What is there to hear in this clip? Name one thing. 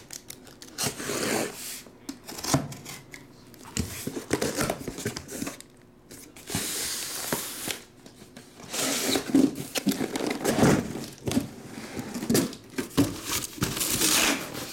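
Cardboard scrapes and rustles as a box is handled and slid.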